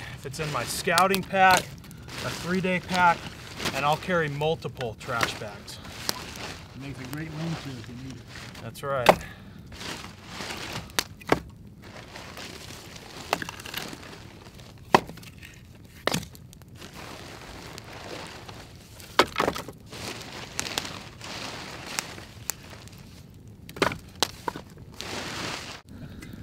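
A small campfire crackles.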